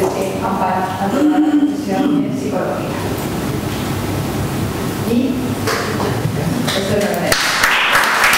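A woman speaks calmly through a microphone in a large room.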